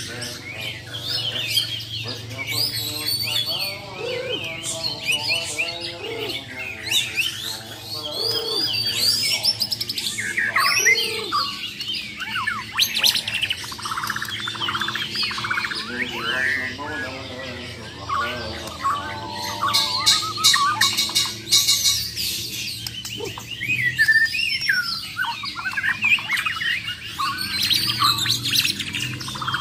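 Caged songbirds sing loud, varied chirping and whistling melodies close by.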